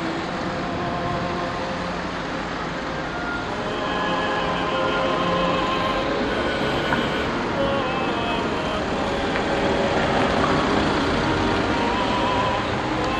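Cars drive past on a busy road.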